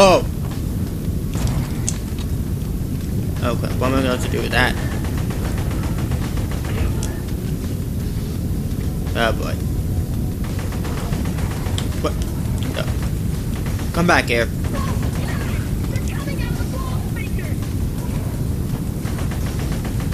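A young man with a headset talks calmly into a microphone.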